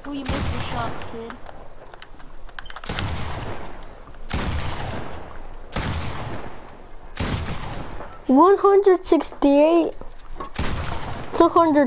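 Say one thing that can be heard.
Gunshots boom again and again, each followed by a long fading echo.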